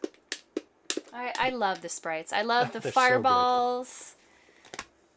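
A woman talks and laughs over a microphone.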